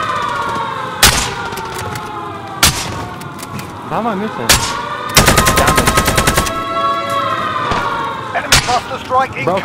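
A rifle fires sharp, loud shots, several in a rapid burst.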